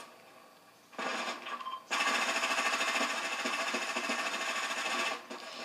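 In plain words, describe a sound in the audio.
Gunshots crack in quick bursts from a video game.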